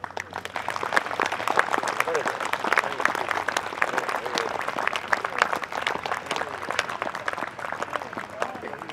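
An audience applauds outdoors.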